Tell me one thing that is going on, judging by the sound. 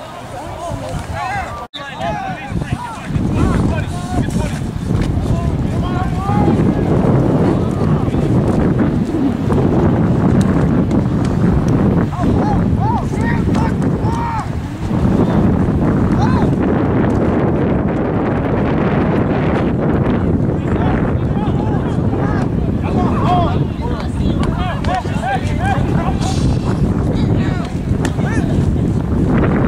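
Young men on a sideline talk and call out to each other nearby.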